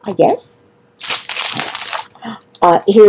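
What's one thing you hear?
A plastic bag crinkles as hands handle it.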